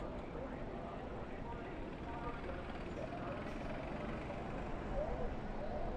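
Race car engines roar as a pack of cars speeds past.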